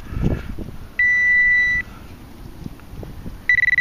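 A handheld probe beeps with a steady high tone.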